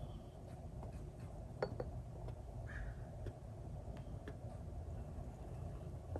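A small bottle taps and scrapes against a ceramic dish.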